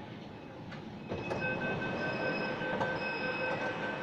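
Train doors slide open with a rush of noise.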